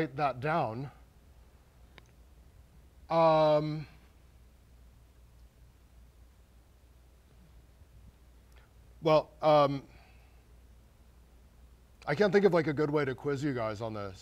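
A man lectures in bursts through a microphone in a large hall.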